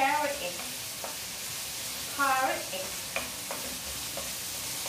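A spatula scrapes and taps against a pan.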